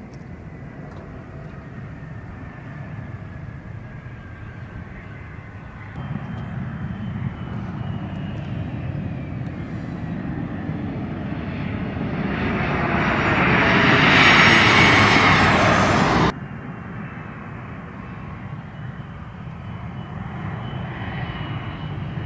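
A jet engine roars loudly outdoors as a military plane takes off.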